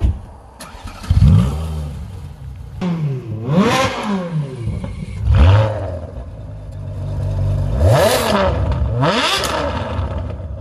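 A sports car engine revs loudly in sharp, repeated bursts.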